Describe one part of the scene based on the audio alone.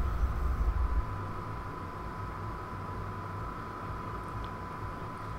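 A steady high beep tone sounds.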